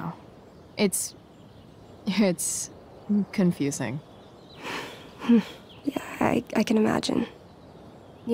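A young woman speaks calmly and quietly.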